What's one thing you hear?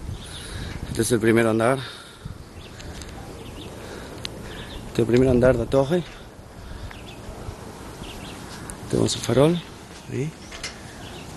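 A man calls out loudly close by, in short drawn-out bursts.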